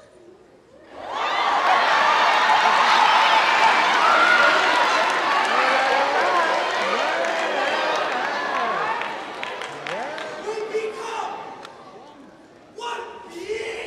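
A large crowd cheers and screams in a large hall.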